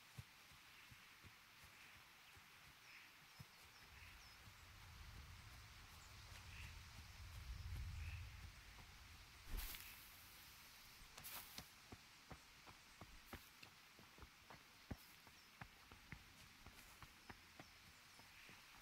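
Footsteps thud quickly on dirt.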